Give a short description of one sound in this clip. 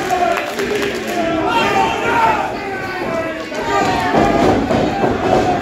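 A crowd of spectators chants and cheers loudly in a large echoing hall.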